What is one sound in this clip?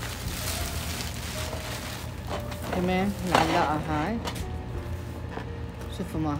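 A cardboard box scrapes and bumps as it is picked up.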